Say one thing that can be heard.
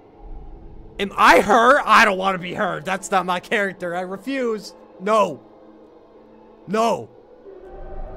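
A young man speaks loudly and excitedly into a close microphone.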